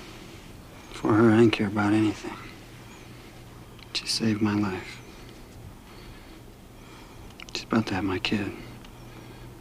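A man speaks softly and close by.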